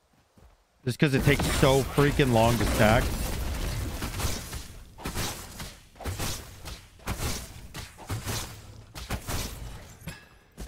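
Spell effects whoosh and crackle in a fast fight.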